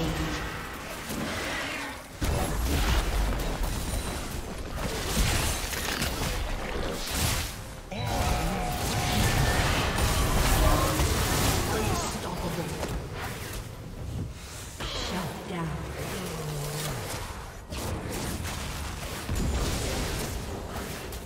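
Magic spells blast, whoosh and crackle in a frantic fantasy battle.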